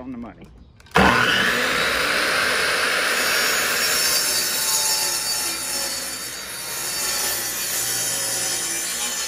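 A power miter saw whirs loudly and cuts through wood.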